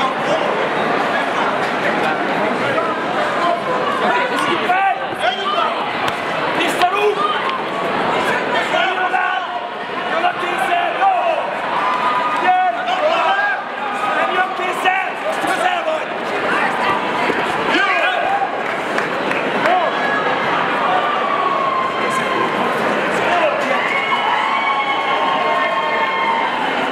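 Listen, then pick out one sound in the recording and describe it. A crowd of people talk and shout in a large echoing hall.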